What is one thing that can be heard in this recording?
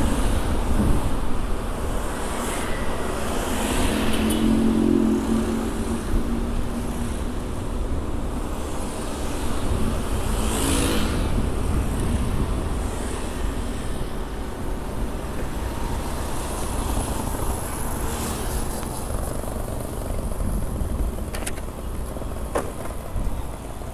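Motorbike engines hum nearby.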